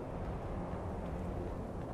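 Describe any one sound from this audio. Footsteps thud softly on wooden boards.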